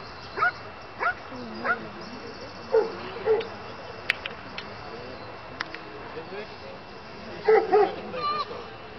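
A dog barks sharply outdoors.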